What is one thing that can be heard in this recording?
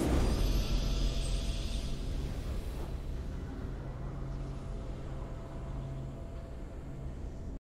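A triumphant game fanfare swells and then settles into a steady low hum of music.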